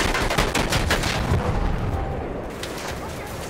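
A large explosion booms close by.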